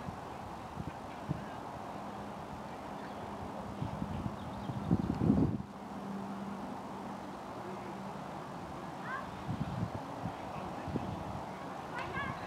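Men talk faintly in the distance outdoors.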